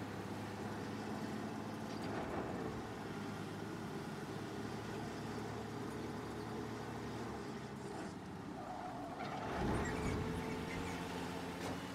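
Tyres roll over a wet road.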